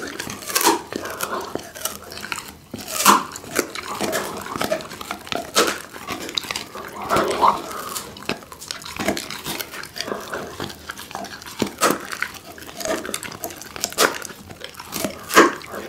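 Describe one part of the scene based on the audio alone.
A pit bull chews and tears at raw meat close to a microphone.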